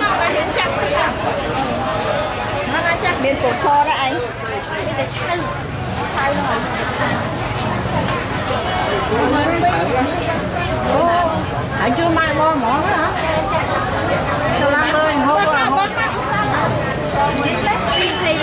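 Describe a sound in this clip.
A young woman talks cheerfully nearby.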